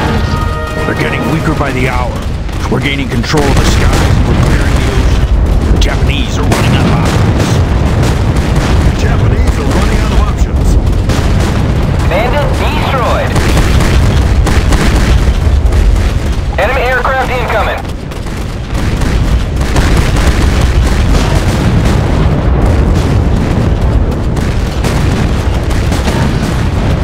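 Heavy gunfire booms and rumbles.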